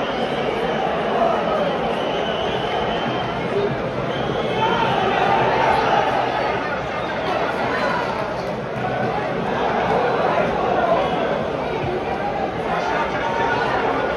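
A large stadium crowd sings a chant loudly together.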